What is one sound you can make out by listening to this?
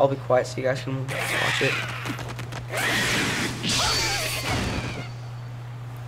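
Swords whoosh and clash in a fight.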